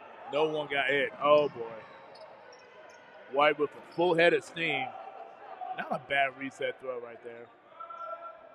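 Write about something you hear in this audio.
Young players shout loudly in a large echoing gym.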